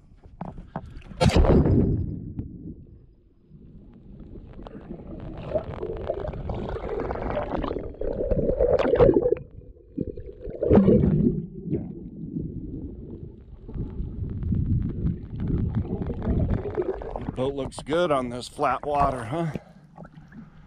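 Underwater, bubbles rush and gurgle around the microphone.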